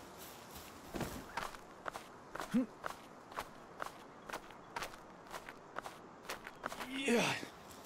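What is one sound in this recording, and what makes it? Hands and feet scrape and knock on rough stone.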